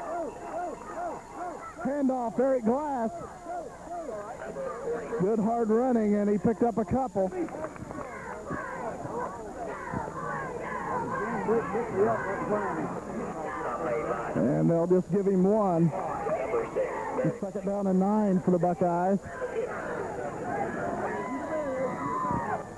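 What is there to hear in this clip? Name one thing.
A crowd of people chatters and cheers outdoors.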